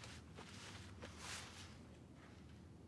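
Fabric rustles as it is handed over.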